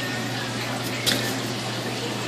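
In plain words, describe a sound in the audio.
A knife stabs into a large whole fish.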